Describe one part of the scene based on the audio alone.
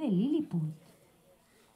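A young woman speaks through a microphone and loudspeaker.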